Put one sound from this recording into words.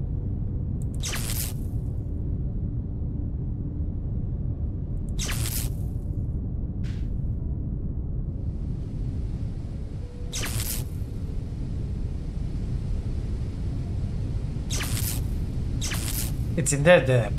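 Short hissing whooshes sound now and then.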